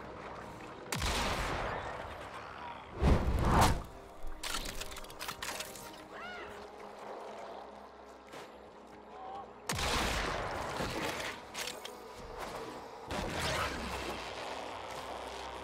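A game character dashes with loud whooshing bursts.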